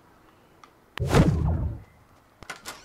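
A heavy thud sounds.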